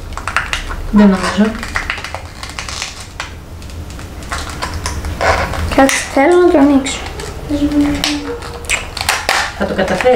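Plastic packaging crinkles and tears as it is cut open.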